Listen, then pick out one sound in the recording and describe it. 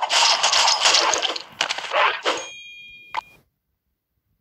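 Video game explosions burst and crackle.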